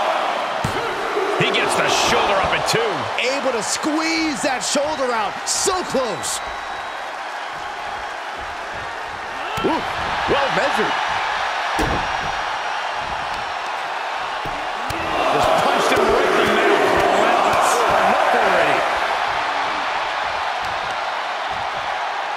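A large crowd cheers and roars in a big arena, swelling loudly for a while.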